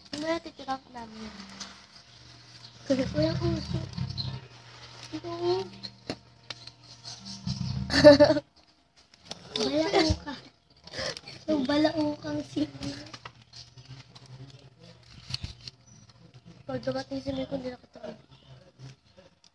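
A paper packet crinkles in a hand.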